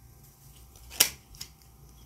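A card is laid down on a table with a soft tap.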